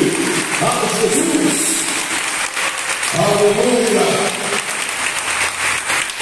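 A man preaches with animation through a microphone in an echoing hall.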